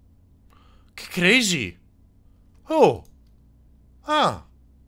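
A young man exclaims loudly into a close microphone.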